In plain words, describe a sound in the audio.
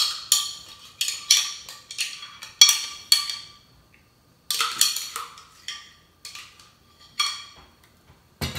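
Thick liquid splashes and taps as it is poured from a blender jug.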